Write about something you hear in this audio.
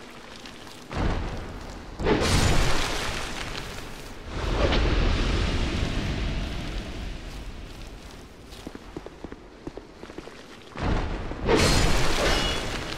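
Fire bursts with a loud roar.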